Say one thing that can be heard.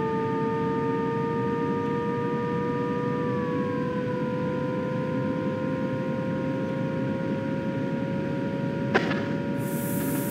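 An electric train motor hums with a steady whine that slowly rises in pitch.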